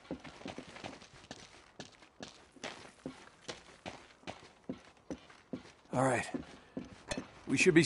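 Footsteps thud quickly on wooden floorboards.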